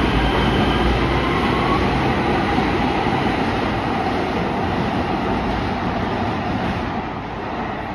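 A train rumbles out of an underground station, its sound echoing off the walls.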